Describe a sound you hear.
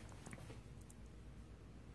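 A plastic box clicks and rattles.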